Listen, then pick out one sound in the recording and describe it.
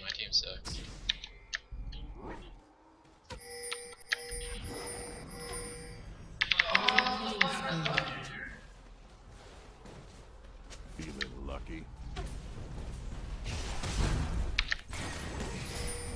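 Game effects clash and burst during a fight.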